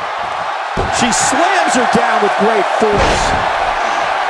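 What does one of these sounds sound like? A body thuds onto a wrestling mat.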